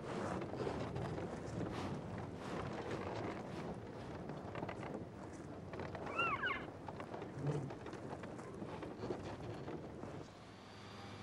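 Elk munch and crunch on hay close by.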